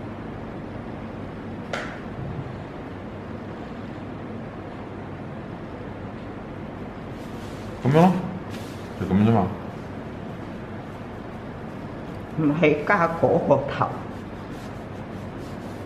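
A brush softly scratches across paper.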